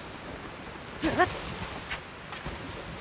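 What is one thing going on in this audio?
Water splashes and rushes.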